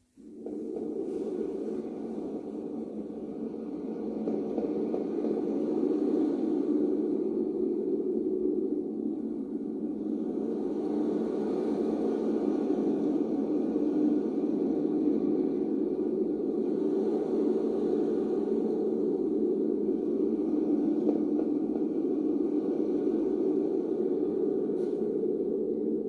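Music plays softly through a television speaker.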